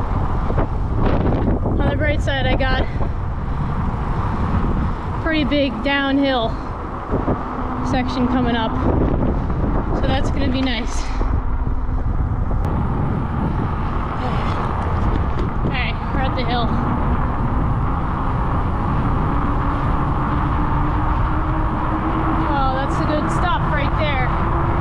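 Wind rushes steadily past a microphone outdoors.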